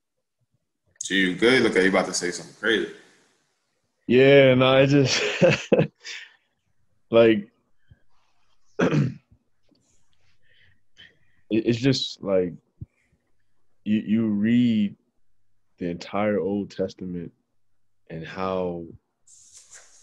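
Young men talk calmly over an online call.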